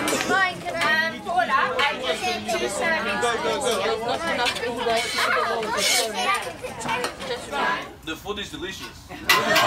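A crowd of children chatters nearby.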